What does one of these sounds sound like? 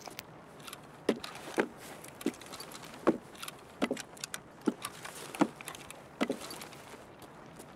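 Footsteps thud steadily across a hard floor.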